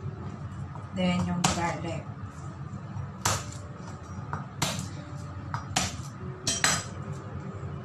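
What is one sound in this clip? A knife chops garlic on a wooden board.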